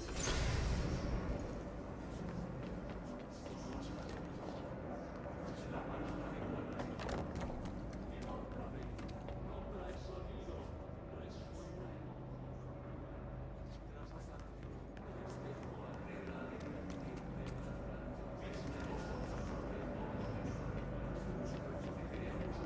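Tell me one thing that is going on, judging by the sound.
Footsteps tap on hard floors and metal stairs.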